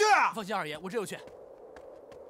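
A man speaks up briefly and firmly.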